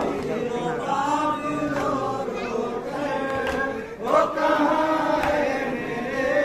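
A crowd of men chants together in unison outdoors.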